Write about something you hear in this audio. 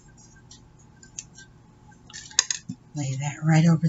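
Paper pieces rustle and crinkle as they are handled.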